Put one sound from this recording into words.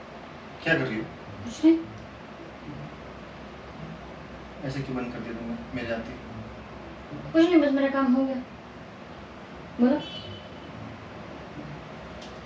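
A young man asks questions in a raised, questioning voice nearby.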